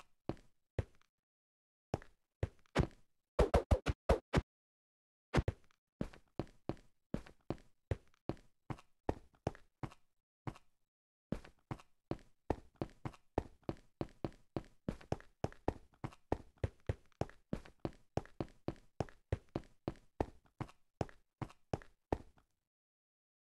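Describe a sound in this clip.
Footsteps tread on stone.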